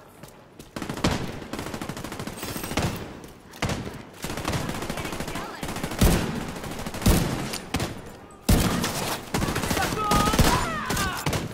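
Gunshots bang out in short bursts.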